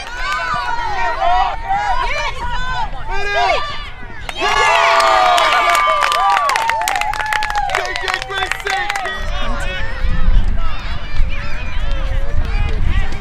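A crowd of spectators shouts and cheers excitedly outdoors.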